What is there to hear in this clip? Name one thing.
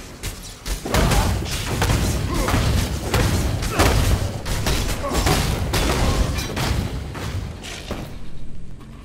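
Weapon blows thud and clash repeatedly.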